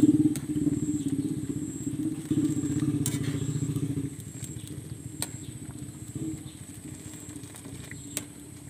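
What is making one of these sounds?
Liquid bubbles and simmers in a pan.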